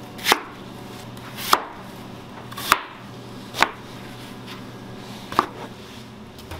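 A knife chops sharply against a cutting board.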